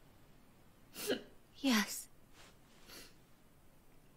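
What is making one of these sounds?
A young woman sobs and sniffles softly.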